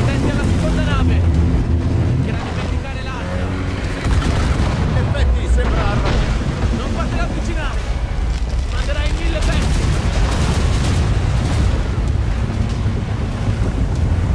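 Strong wind roars through a storm.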